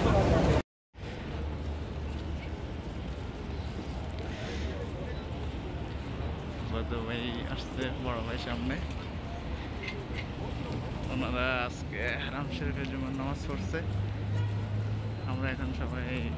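People chatter while walking along a busy street.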